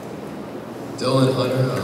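A second young man speaks into a microphone.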